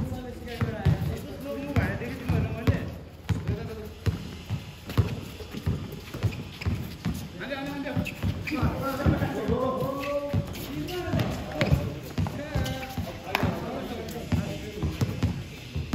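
A basketball bounces on hard ground outdoors.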